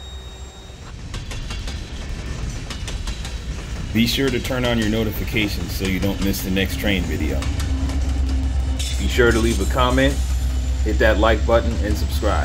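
A freight train rolls past close by, its wheels clattering on the rails.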